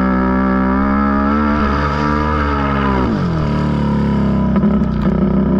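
Wet sand and water spray against the quad bike.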